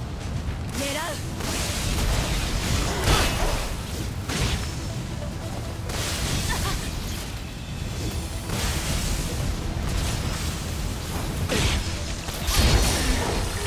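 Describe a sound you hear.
Air rushes past in loud whooshing bursts.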